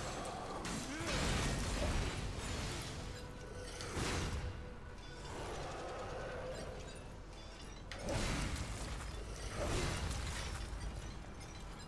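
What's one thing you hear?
A giant creature roars.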